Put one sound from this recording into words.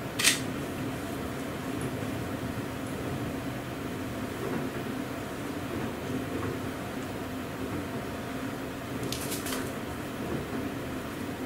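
A man handles a small object with his hands.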